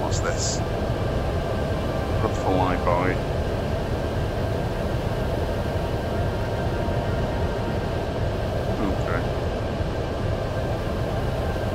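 Wind rushes steadily past a gliding aircraft.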